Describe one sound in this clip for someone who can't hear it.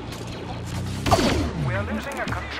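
An explosion bursts with a loud blast.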